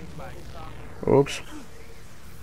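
An electric bow fires with a sharp crackling zap.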